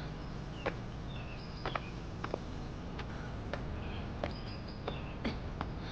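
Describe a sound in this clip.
Dry grass rustles as a woman pushes through it.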